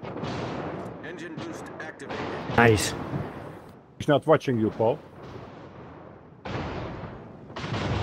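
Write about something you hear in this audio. Ship guns fire in heavy booming bursts.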